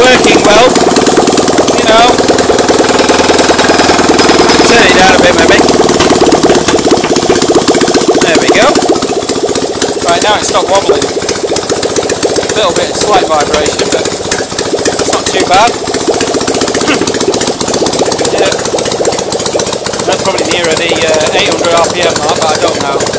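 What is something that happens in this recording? A small engine runs loudly with a rapid, steady clatter.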